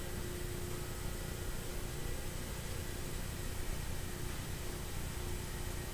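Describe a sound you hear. Electric fans whir and blow with a steady rushing hum.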